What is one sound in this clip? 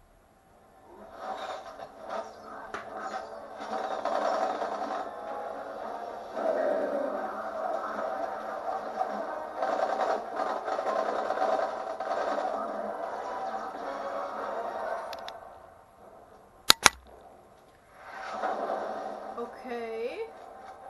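Battle sounds and clashing weapons play through a television loudspeaker.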